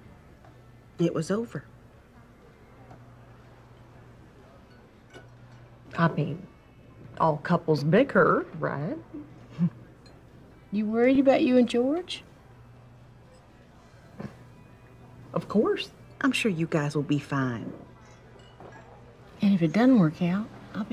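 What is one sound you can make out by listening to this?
An older woman speaks calmly close by.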